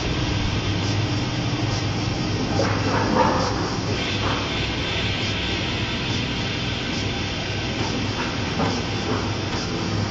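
Voices of people chatter faintly in the distance.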